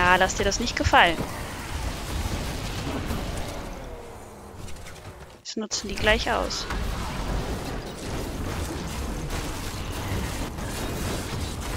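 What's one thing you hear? Magic blasts and explosions crackle and boom in a fast fight.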